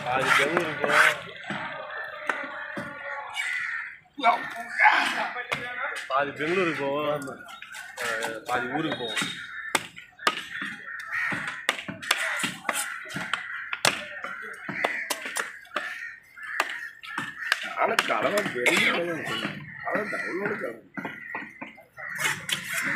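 A heavy knife chops into a wooden block with sharp thuds.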